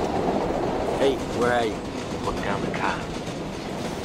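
An elderly man speaks briefly on a phone nearby.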